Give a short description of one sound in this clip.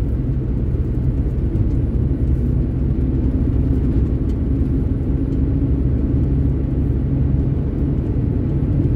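A vehicle engine rumbles steadily from inside the moving vehicle.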